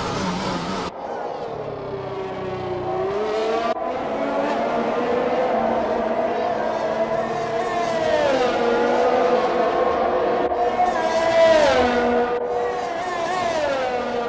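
A racing car engine whines at high revs and drops in pitch as gears shift.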